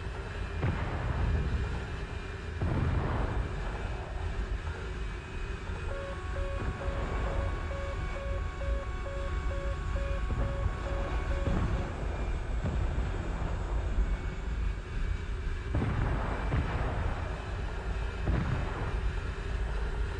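Wind rushes over a cockpit canopy.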